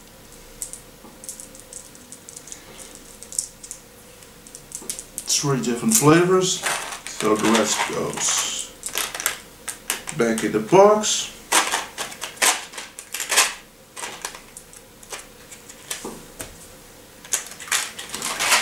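Paper crinkles and rustles in a young man's hands.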